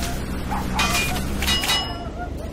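Bullets ping off metal.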